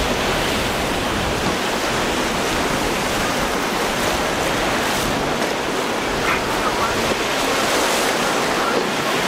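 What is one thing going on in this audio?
Strong wind blows across open water.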